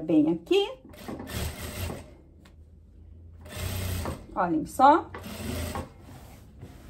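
A sewing machine runs in short bursts of stitching.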